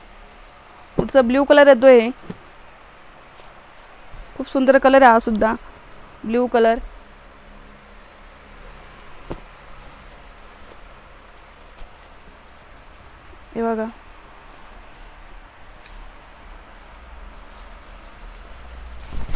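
Fabric rustles as a woman unfolds and spreads cloth.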